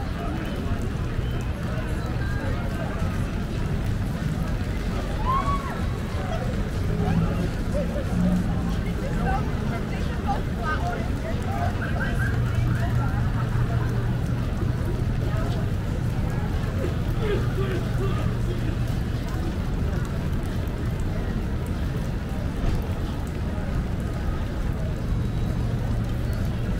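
City traffic rumbles steadily in the distance.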